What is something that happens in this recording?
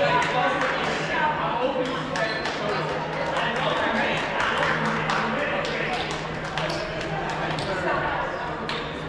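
Paddles pop against plastic balls in quick, uneven bursts.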